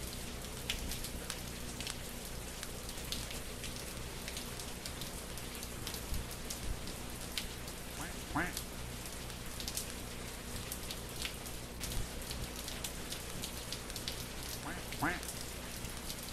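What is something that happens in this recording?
Rain falls steadily with a soft hiss.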